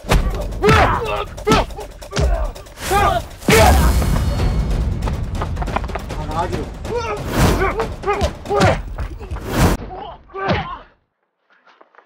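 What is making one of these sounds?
Punches and blows thud hard during a scuffle.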